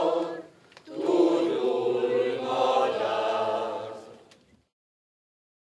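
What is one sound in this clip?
A choir of men and women sings together outdoors.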